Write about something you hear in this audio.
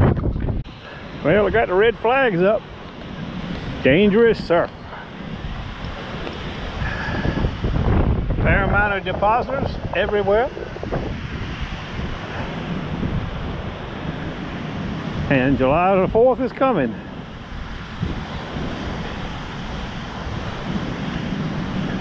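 Waves crash and wash onto a shore.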